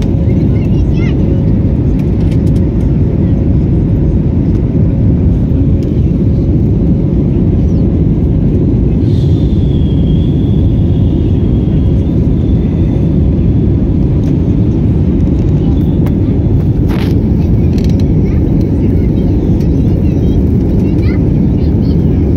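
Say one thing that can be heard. Jet engines roar steadily with a deep, constant rumble inside an airliner cabin.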